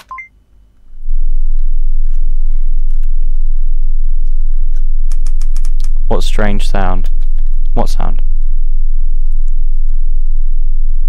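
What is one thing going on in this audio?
A low, steady hum drones from a portable CD player.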